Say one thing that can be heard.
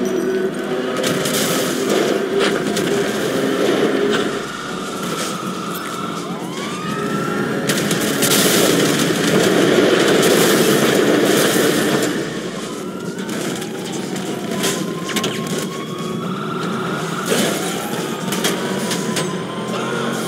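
Sirens wail nearby.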